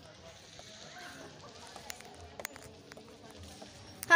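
Footsteps thud on a wooden boardwalk.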